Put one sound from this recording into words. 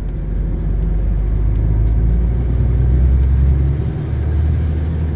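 A vehicle's engine drones low and steady from inside the cab.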